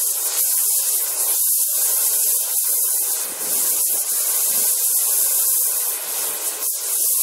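A burning firework fizzes and hisses loudly and steadily.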